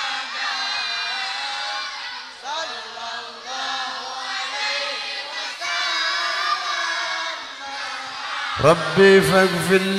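A group of young men sing together through loudspeakers.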